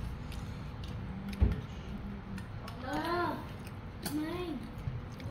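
A boy chews food.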